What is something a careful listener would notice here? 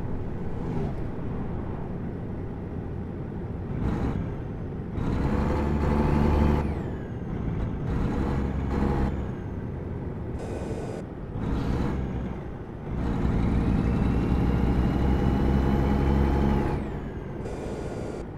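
A truck's diesel engine rumbles steadily, growing louder and softer as the throttle changes.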